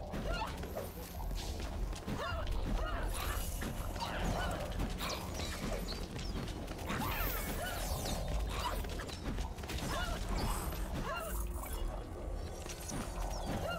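Fast blows and magic blasts crackle and whoosh in quick succession.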